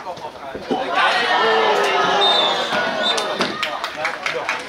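Young players and onlookers cheer loudly after a goal.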